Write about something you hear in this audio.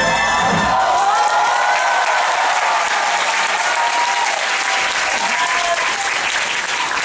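People in the audience whistle shrilly.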